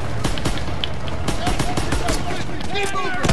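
Rapid gunfire rattles in sharp bursts.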